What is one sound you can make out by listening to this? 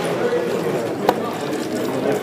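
A game clock's button is pressed with a sharp click.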